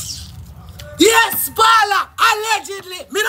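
A young woman shouts excitedly.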